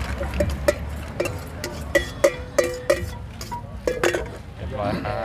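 A metal spoon clinks and scrapes against a steel bowl.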